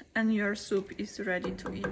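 A wooden spoon stirs thick soup in a pan.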